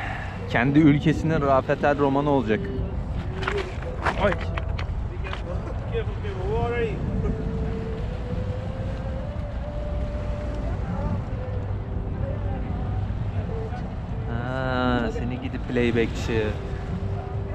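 A man sings outdoors.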